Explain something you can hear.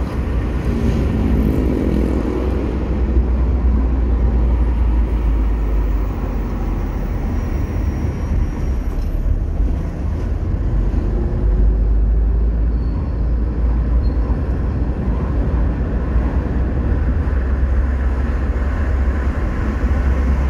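A car drives along an asphalt avenue, heard from inside, with a low engine hum and road rumble.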